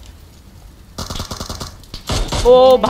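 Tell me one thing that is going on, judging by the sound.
Rifle shots fire in a rapid burst.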